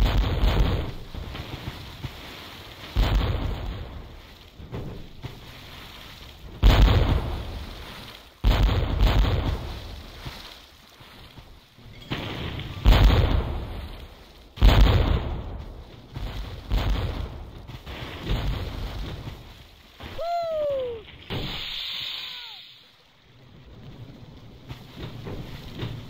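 Explosions burst with loud booms.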